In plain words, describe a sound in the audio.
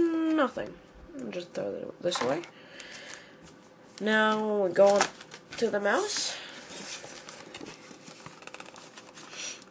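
Cardboard packaging rustles and scrapes as hands handle it.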